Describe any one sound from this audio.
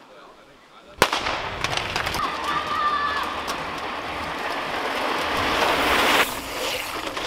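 Bicycle tyres crunch over gravel.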